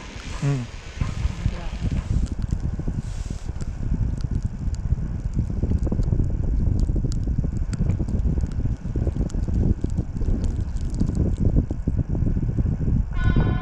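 Wind gusts and rumbles against a microphone outdoors.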